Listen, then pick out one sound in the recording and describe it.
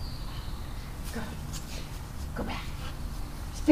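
A woman talks to a dog in an encouraging voice.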